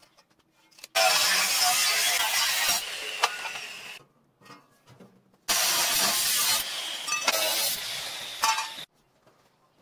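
An angle grinder whines loudly as it cuts through metal.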